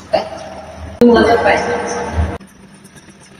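A woman speaks cheerfully close by.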